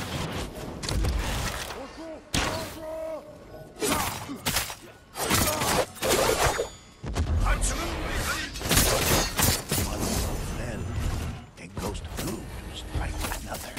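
Swords clash and slash with sharp metallic strikes.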